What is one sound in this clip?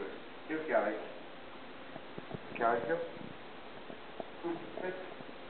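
A man talks nearby in short phrases.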